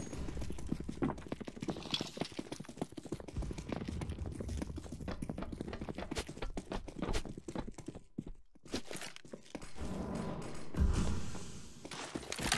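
Quick footsteps run on a hard floor.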